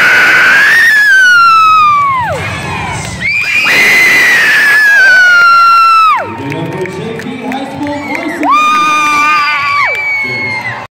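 A group of teenage girls shouts long, high cheers that trail off in pitch.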